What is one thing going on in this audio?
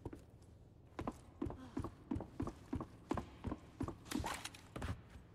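Footsteps thud steadily on wooden stairs and floorboards.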